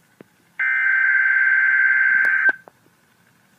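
A weather alert radio sounds a steady high alarm tone.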